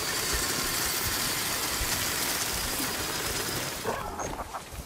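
A machine creature's energy beam crackles and hisses loudly, then cuts off.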